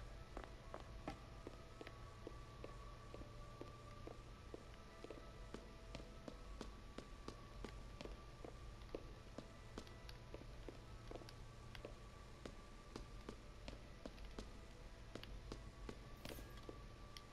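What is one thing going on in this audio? Footsteps tap steadily across a wooden floor.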